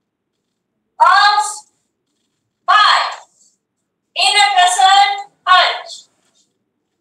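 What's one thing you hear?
A woman shouts short, sharp calls through an online call.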